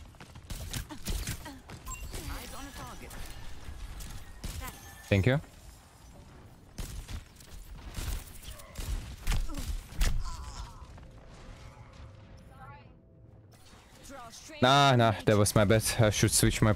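Laser beams zap and hum.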